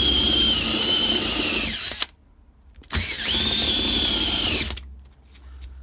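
A drill whines as a hole saw cuts through plastic.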